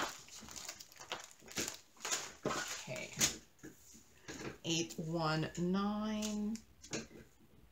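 A plastic bag crinkles in someone's hands.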